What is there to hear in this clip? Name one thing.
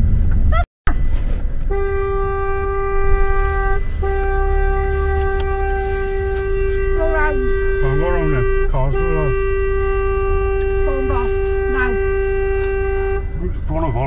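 A car engine hums and tyres rumble on the road from inside the car.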